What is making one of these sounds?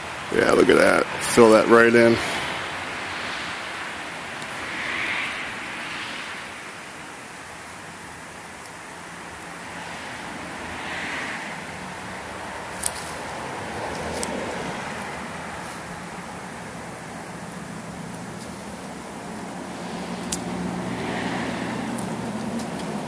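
Paper rustles and crinkles as hands wrap it around a cardboard tube.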